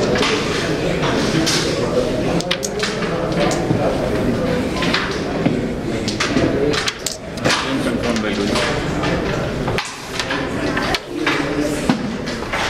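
Carrom pieces clack sharply against each other and the board edge.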